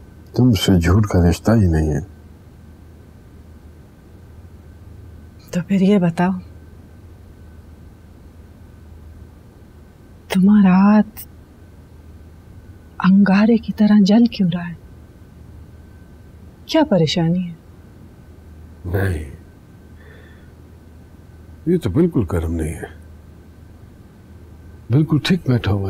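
A man speaks in a low, strained voice, close by.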